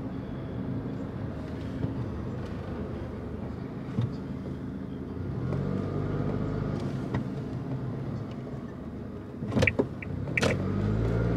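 A car engine hums steadily from inside while driving.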